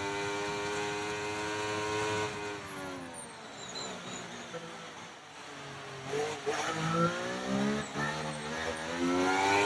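A racing car engine screams at high revs, drops in pitch as it slows, then revs up again.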